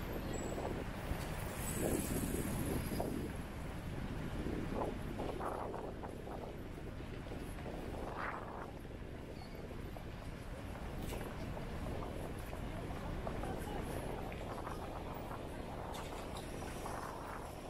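Footsteps of a crowd shuffle on paving outdoors.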